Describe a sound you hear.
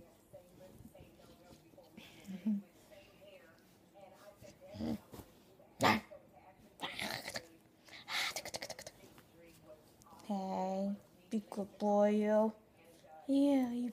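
A dog's fur rustles as a hand rubs it.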